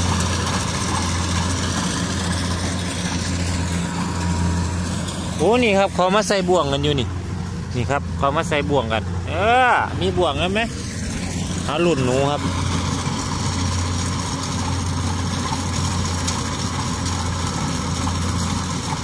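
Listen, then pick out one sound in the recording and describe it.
A combine harvester's engine drones steadily nearby.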